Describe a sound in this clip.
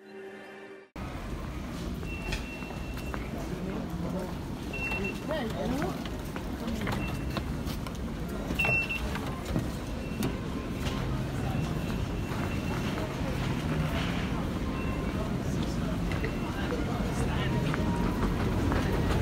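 Footsteps echo through a large hall.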